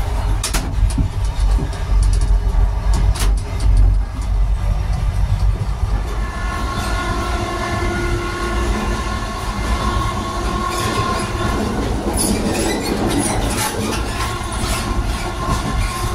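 A train rumbles steadily with a low hum.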